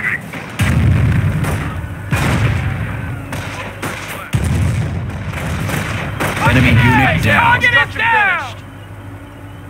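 Loud explosions boom and rumble one after another.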